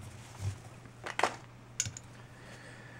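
A lighter clicks as its wheel is struck.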